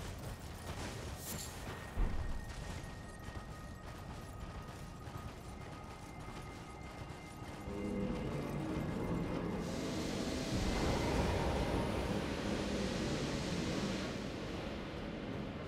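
A blizzard wind howls throughout.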